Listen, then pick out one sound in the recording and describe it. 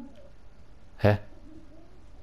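Knuckles knock on a wooden door.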